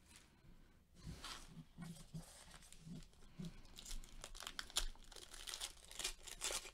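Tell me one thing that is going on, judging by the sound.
Gloved hands rustle and crinkle foil card packs.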